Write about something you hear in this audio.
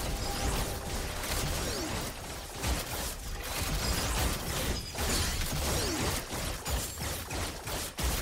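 Game spell effects whoosh and crackle in a battle.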